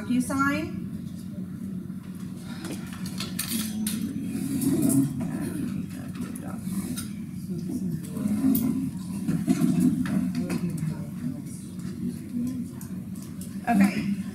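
Laptop keys click as a woman types.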